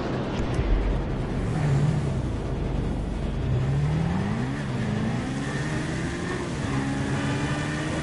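A motorcycle engine revs up as the bike pulls away.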